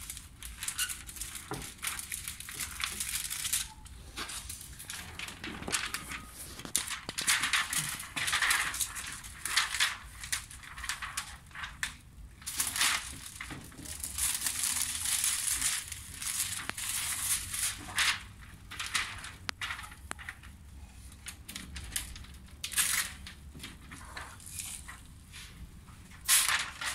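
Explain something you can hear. Plastic tint film crinkles and rustles against a car window.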